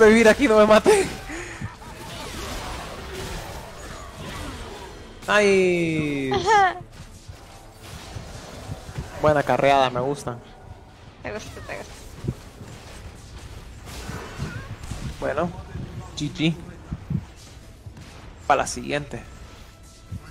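A young woman talks into a close microphone, with animation.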